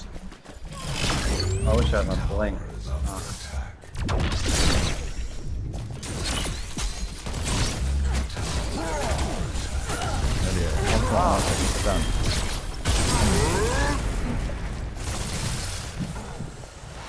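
Magic blasts burst and crackle in a game fight.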